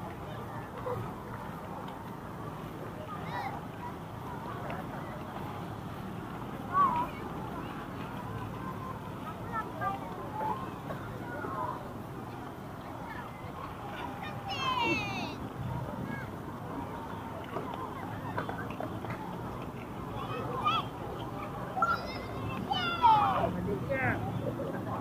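Children shout and call out across an open outdoor square.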